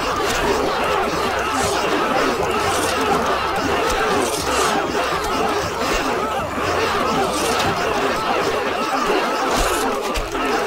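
A large troop of soldiers tramps steadily across sand.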